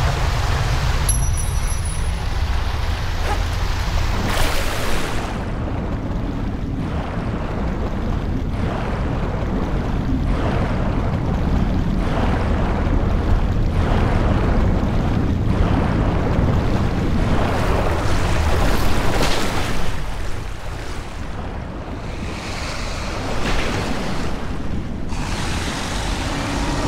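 Water rushes and churns with a deep, steady roar.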